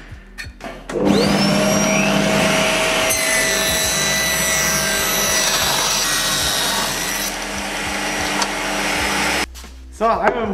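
A table saw whines as it spins up and cuts through wood.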